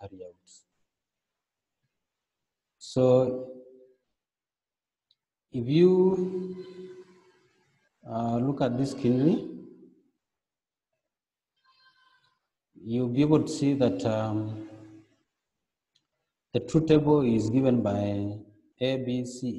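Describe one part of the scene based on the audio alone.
A man speaks calmly and clearly into a close microphone, in bursts with pauses.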